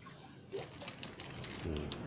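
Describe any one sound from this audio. Dried fish rustle and crackle as a hand moves them.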